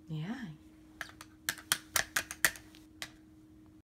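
Plastic toys click and clatter.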